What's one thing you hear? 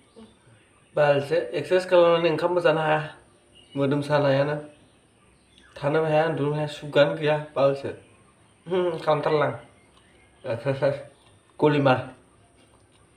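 A young man talks close by with animation.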